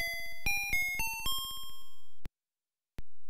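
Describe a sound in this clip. A short electronic jingle plays rising chiptune notes.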